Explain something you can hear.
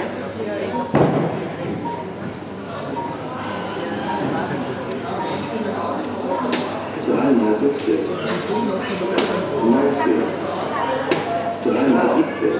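Darts thud into an electronic dartboard.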